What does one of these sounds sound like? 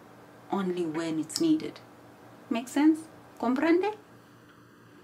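A young woman speaks close to a microphone in a lively, friendly way.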